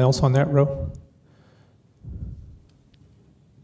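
A man speaks briefly through a microphone in a large room.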